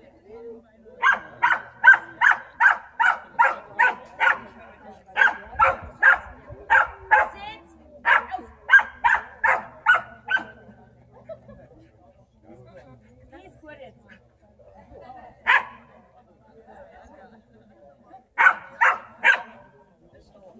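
A dog barks loudly in quick, repeated bursts.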